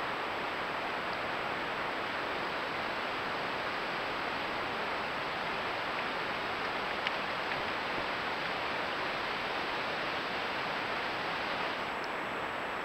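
A stream flows with a steady rushing sound.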